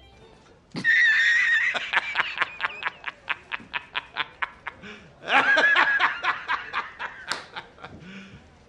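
A middle-aged man laughs loudly and heartily in bursts.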